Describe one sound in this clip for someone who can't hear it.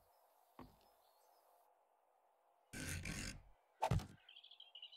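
A chair thumps down onto a wooden floor.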